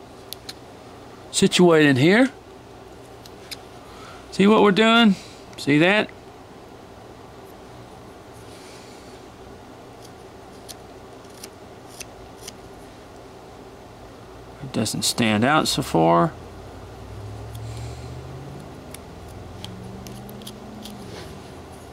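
A small knife scrapes and shaves wood close by.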